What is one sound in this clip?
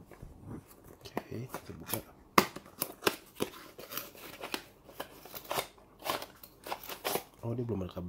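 Cardboard packaging rustles and crinkles as a box is opened by hand.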